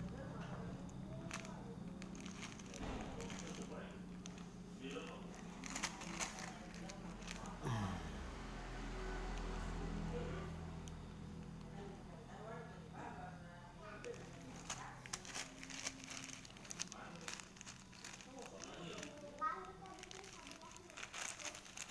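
Small stones clink and rattle inside a plastic bag.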